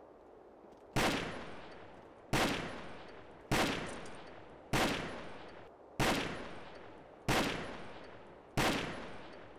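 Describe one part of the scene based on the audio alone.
A rifle fires single loud shots at a slow, steady pace, each ringing out.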